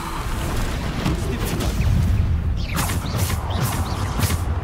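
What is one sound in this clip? Magic spells crackle and whoosh in short bursts.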